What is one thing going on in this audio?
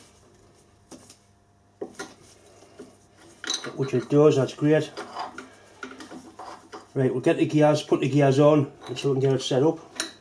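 A wrench clicks and clinks against metal bolts.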